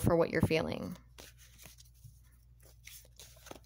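Cards rustle softly in a hand.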